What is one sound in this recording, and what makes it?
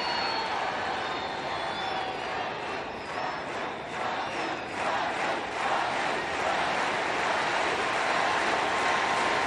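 A large crowd murmurs and cheers steadily in an open stadium.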